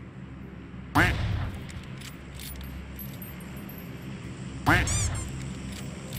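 A sniper rifle fires two loud shots.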